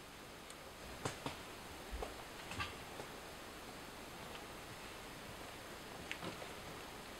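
Twigs and clothing rustle and snap close by as a person shifts position.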